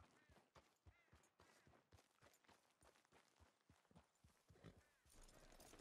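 A horse's hooves thud steadily on a dirt path.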